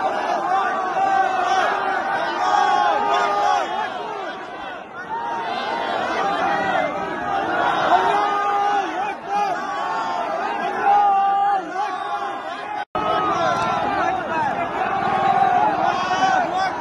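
A large crowd of men chants and shouts loudly outdoors, close by.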